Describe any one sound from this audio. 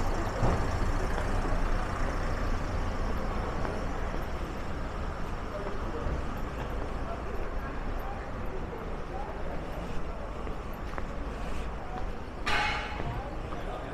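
Outdoors, steady street noise fills the air.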